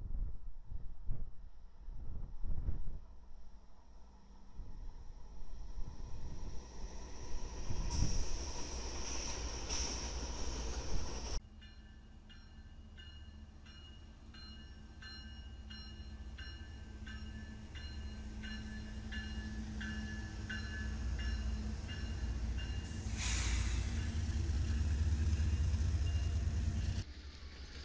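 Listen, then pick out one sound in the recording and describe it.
A freight train rumbles past with locomotive engines droning.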